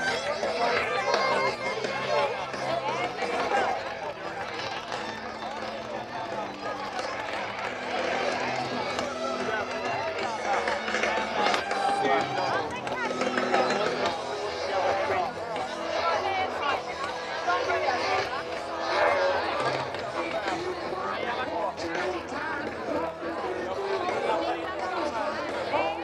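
A large crowd chatters and murmurs nearby.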